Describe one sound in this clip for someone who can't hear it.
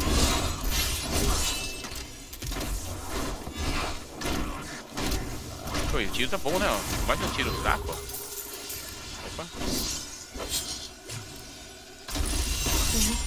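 Video game battle effects crackle, zap and boom.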